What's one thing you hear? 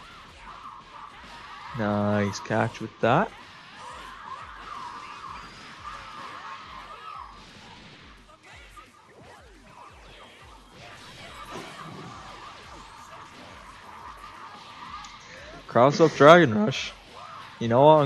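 Punches and energy blasts crack and thud in quick bursts.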